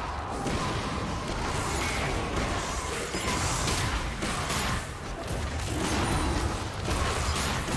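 Magic blasts and weapon hits crackle in a fast fight.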